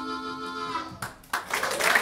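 A harmonica plays a held, wavering chord through a loudspeaker.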